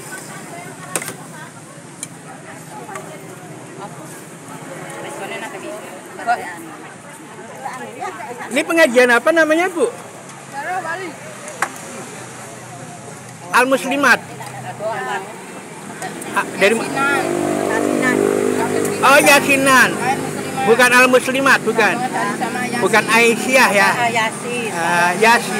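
Several women talk and chatter in a busy outdoor crowd.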